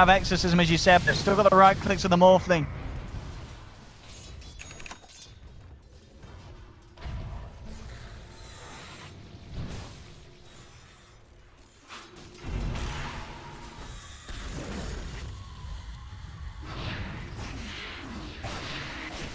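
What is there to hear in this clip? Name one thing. Magic blasts and clashing weapons sound in a video game battle.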